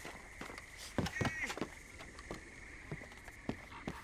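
Boots thud on wooden planks.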